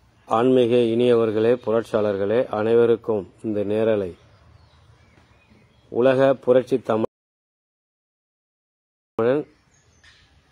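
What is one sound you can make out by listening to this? A man speaks calmly close to a phone microphone, with pauses.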